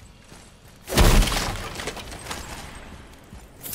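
A heavy chest bursts open with a loud crash.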